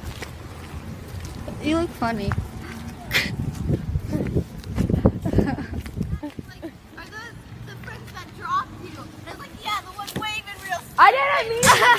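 A teenage girl talks and laughs with animation close by.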